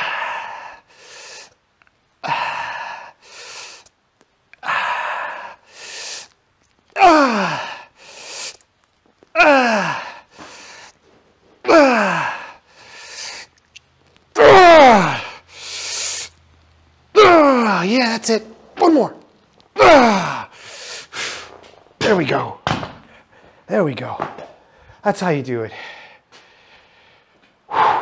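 A middle-aged man talks close to a microphone, breathless and strained.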